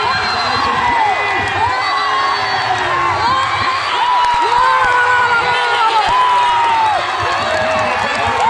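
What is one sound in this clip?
A large crowd murmurs and cheers outdoors.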